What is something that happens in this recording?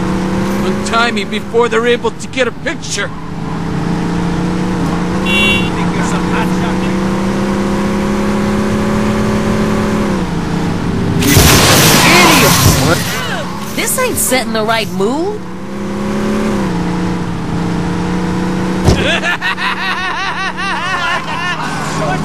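Car tyres skid and screech on the road.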